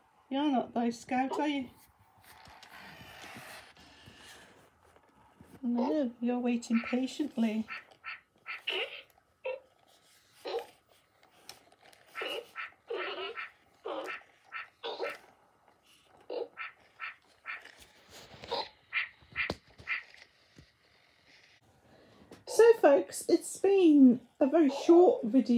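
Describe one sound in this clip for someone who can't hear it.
A robot dog whimpers and yaps with electronic sounds.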